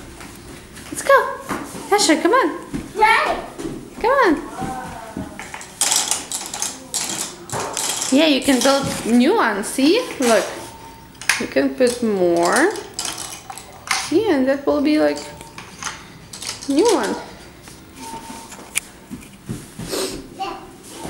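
A woman talks nearby in a lively, sing-song voice.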